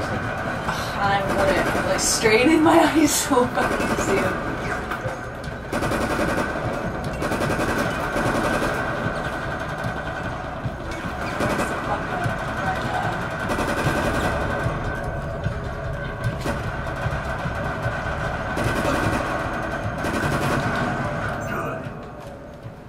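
Rapid gunfire rattles in repeated bursts.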